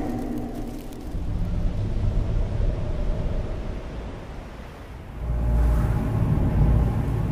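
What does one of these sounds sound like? Strong wind roars and gusts, growing louder toward the end.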